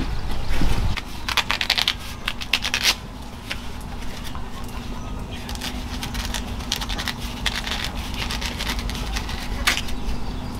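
Corn husks rustle and tear as a knife cuts them.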